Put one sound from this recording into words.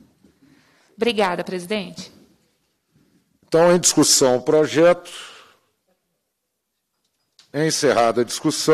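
An elderly man speaks into a microphone in short bursts.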